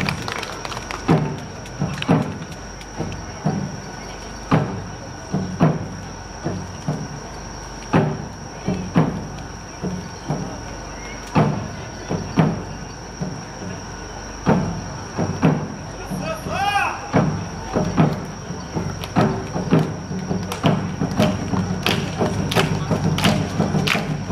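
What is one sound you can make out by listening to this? Drums beat a steady, lively rhythm outdoors.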